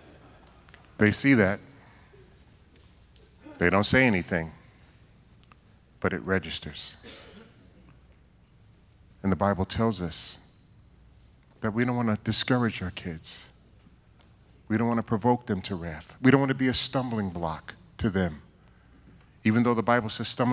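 A middle-aged man speaks into a microphone with animation, in short bursts with pauses, heard through loudspeakers in a large room.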